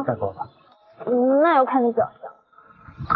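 A young woman speaks, up close.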